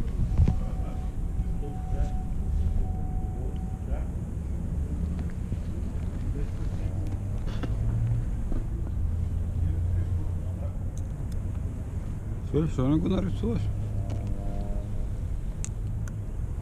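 Wind rumbles steadily across open water.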